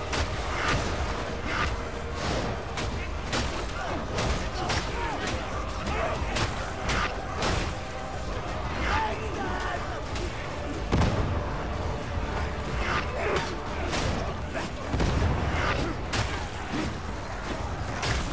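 Heavy weapons slash and thud against bodies in quick, repeated blows.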